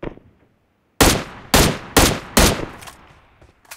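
A rifle fires several loud shots in quick succession.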